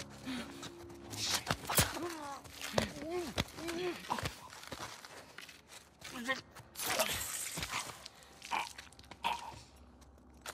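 A man grunts and gasps while struggling.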